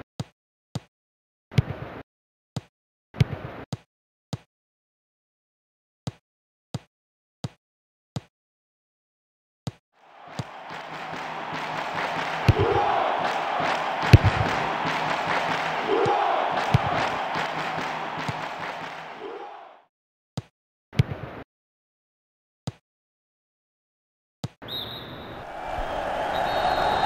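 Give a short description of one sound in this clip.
A football is kicked with short, dull thuds.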